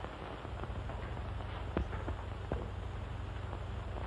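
A heavy door swings shut.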